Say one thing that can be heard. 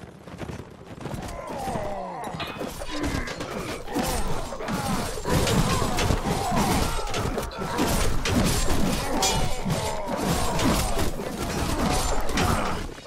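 Swords clash and clang in a loud battle.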